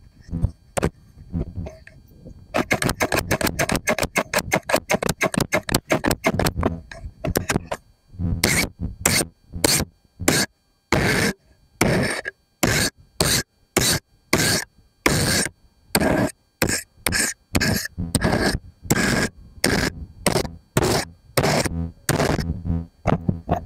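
Scissors snip again and again, close by.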